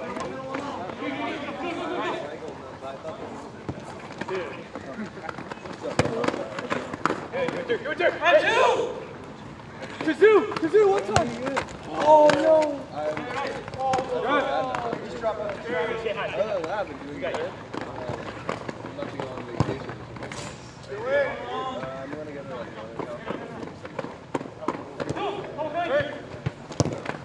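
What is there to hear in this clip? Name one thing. Young men shout and call to each other outdoors during a game.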